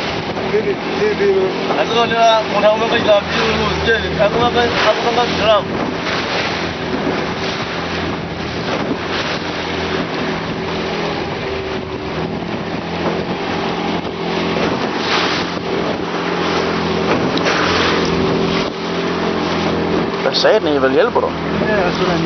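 A boat engine drones steadily.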